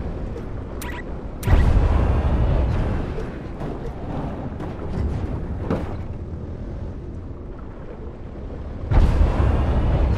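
A quad bike engine rumbles and revs, muffled as if underwater.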